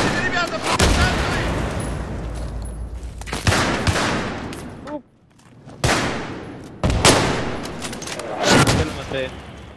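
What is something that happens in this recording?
Rifle shots crack loudly and echo.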